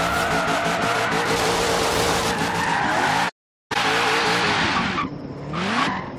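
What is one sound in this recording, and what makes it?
A car engine revs hard.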